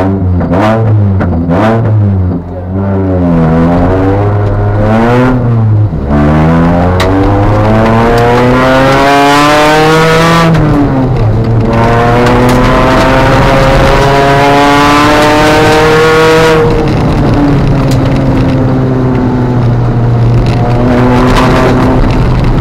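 Tyres crunch and rumble over gravel.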